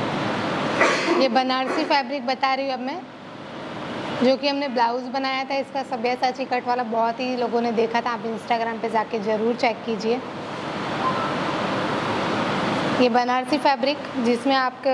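A young woman talks calmly into a clip-on microphone.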